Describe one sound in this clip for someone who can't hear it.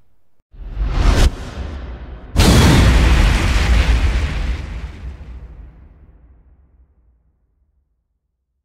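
A booming whoosh bursts out and slowly fades away.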